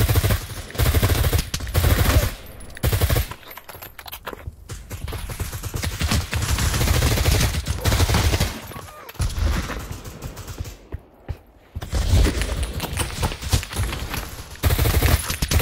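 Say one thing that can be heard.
Rifle shots fire in rapid, loud bursts.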